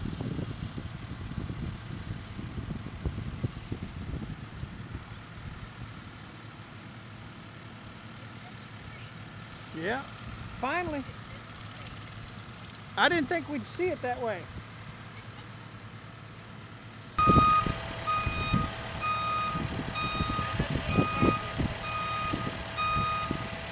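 A heavy machine's diesel engine rumbles nearby.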